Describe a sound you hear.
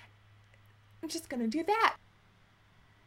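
A young woman speaks close to a microphone with a cheerful, lively tone.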